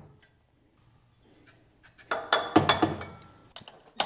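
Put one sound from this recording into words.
A metal part clinks as it is handled.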